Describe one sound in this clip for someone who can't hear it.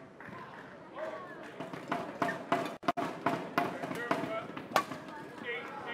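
A shuttlecock is smacked back and forth with sharp hits.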